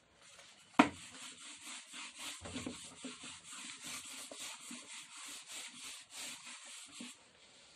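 An eraser rubs quickly back and forth across a whiteboard.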